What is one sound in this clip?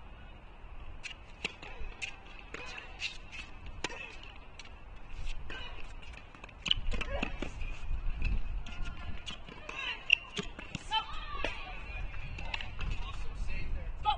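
A tennis racket strikes a ball with sharp pops in a large echoing hall.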